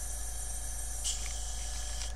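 A small plastic part clicks against a hard surface.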